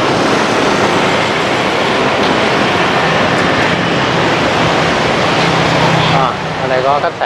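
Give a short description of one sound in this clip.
Traffic rumbles and hums along a busy street.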